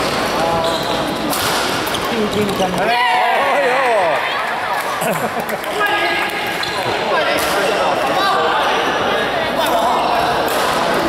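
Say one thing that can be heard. Sports shoes squeak sharply on a court floor in a large echoing hall.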